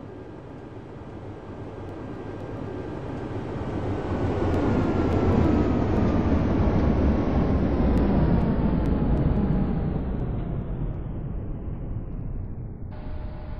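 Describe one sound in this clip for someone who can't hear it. A tram's wheels roll steadily along rails.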